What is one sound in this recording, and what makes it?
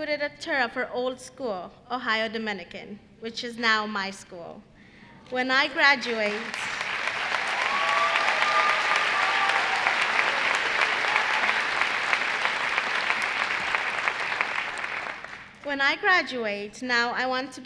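A young woman speaks emotionally into a microphone over loudspeakers.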